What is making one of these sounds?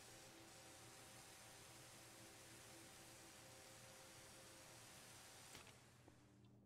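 A spray nozzle hisses steadily.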